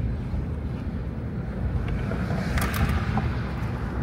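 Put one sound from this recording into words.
A heavy truck rumbles nearby.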